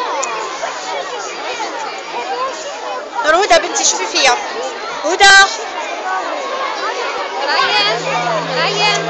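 A crowd of children chatters loudly nearby.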